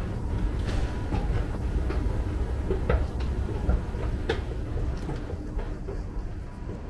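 A moving walkway rumbles and hums steadily, then fades.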